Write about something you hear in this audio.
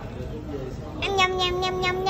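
A toy bubble gun whirs with a high electronic tone.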